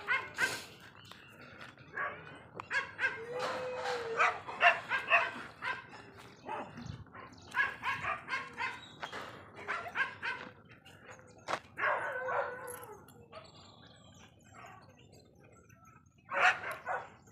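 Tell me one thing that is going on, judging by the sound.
Dry grass rustles under a dog's paws.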